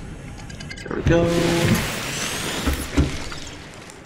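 A hatch whooshes and clanks shut.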